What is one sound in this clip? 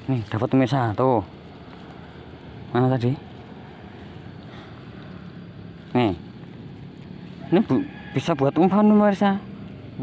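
A mesh net rustles as hands handle it.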